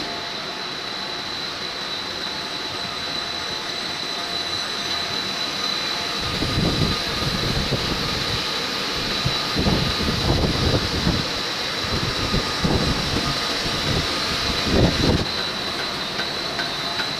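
Factory machinery hums and whirs steadily in a large echoing hall.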